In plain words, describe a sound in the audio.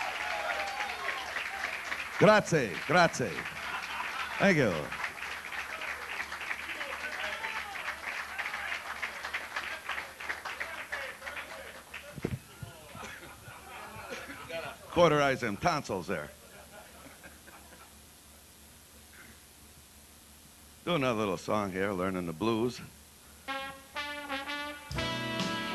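An elderly man sings into a microphone over a loudspeaker, in a large echoing room.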